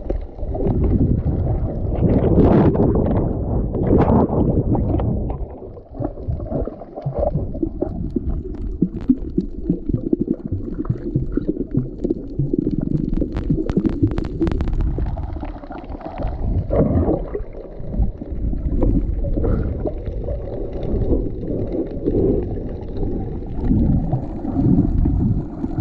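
Water rushes and swirls around, heard underwater.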